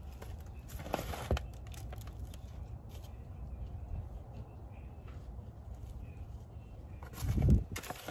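Soil crumbles and rustles as fingers work it in a plastic cup.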